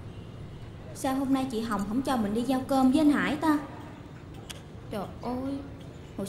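A young woman speaks in an annoyed tone.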